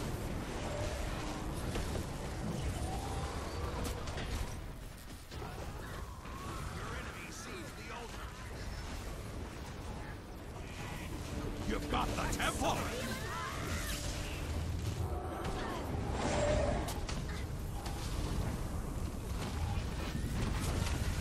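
Spells crackle and burst in the combat of a fantasy video game.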